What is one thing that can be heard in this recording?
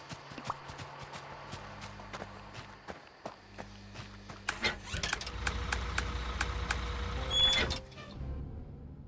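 Footsteps tap quickly and steadily.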